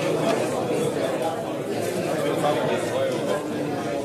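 Dice rattle in a cup and tumble onto a board.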